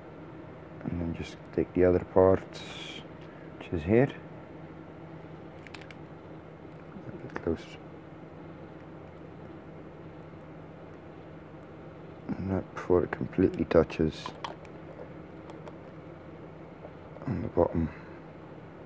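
Small plastic parts click and snap together in someone's fingers.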